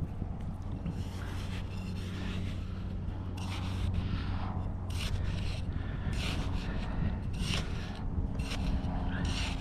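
A small trowel scrapes and digs into loose sand.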